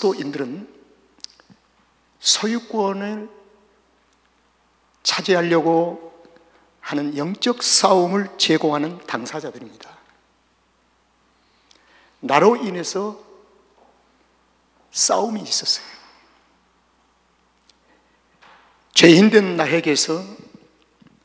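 An elderly man speaks into a microphone with feeling, in short phrases broken by pauses.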